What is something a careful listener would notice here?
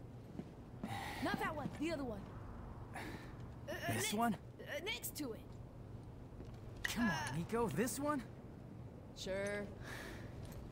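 A young man answers calmly.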